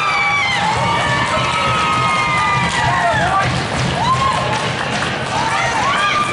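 Young hockey players cheer and shout in an echoing rink.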